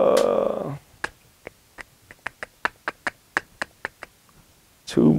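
A man snaps his fingers in a steady rhythm.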